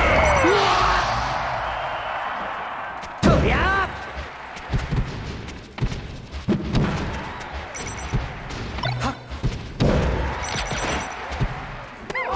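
Sharp hits and whooshes from a video game fight ring out in quick bursts.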